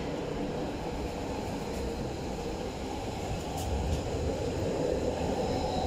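An underground metro train rumbles through a tunnel, heard from inside the carriage.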